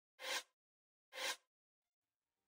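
Two short menu blips sound.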